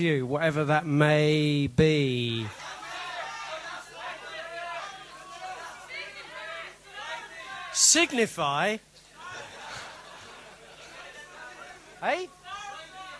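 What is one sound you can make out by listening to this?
A man sings live into a microphone.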